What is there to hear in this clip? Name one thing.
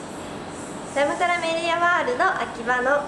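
A young woman speaks brightly and close to a microphone.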